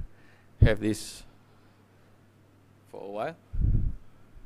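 A man speaks through a microphone in short phrases.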